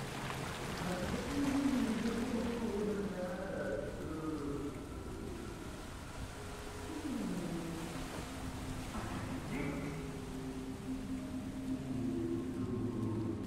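Water pours and splashes steadily nearby.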